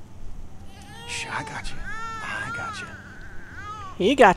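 A man whispers gently and soothingly.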